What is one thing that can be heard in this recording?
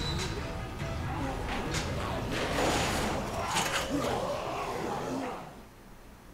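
Hands rattle and bang on metal bars.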